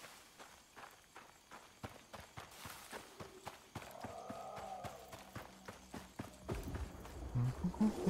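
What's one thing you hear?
Footsteps crunch over dry grass.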